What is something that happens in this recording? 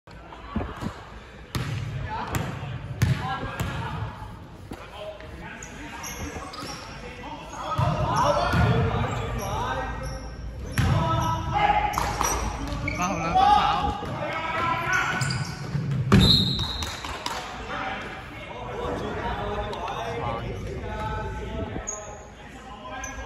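Men shout and call out across an echoing gym.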